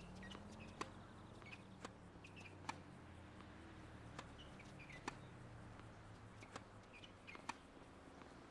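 A tennis ball is struck back and forth with sharp pops of rackets.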